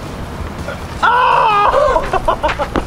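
A young man shouts loudly outdoors.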